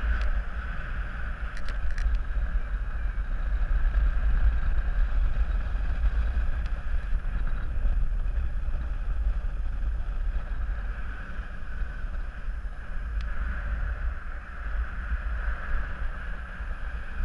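Wind rushes and buffets loudly past the microphone.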